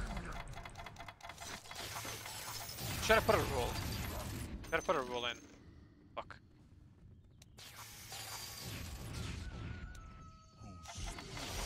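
Game combat sounds clash and crackle.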